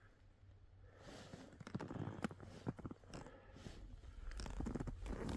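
Skis hiss and swish through deep powder snow.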